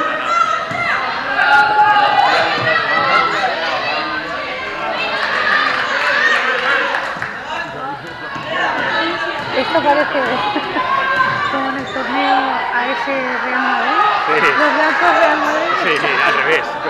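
Children shout and call out in a large echoing hall.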